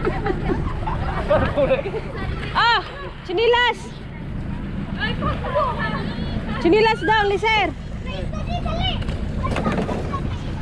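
Water splashes around people wading.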